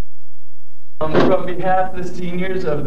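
A young man speaks up close, with animation.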